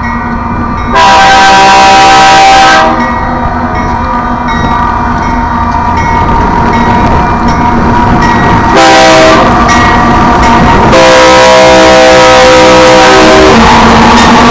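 A train horn blasts loudly several times as a train approaches.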